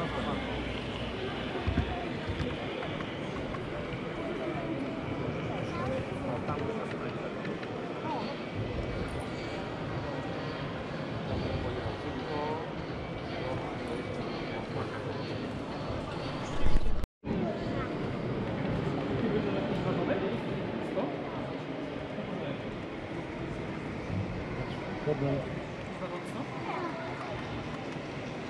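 A model train hums and clicks along its track.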